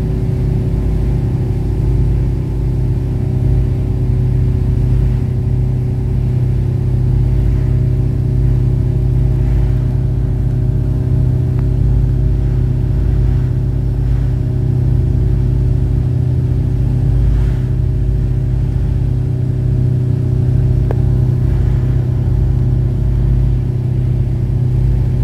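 Water splashes and churns in a boat's wake.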